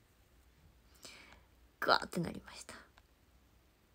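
A young woman speaks softly and briefly close to a microphone.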